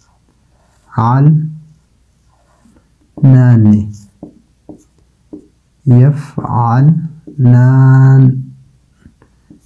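A man speaks slowly and clearly, in short bursts, close to a microphone.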